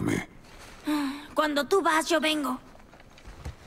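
A boy speaks calmly.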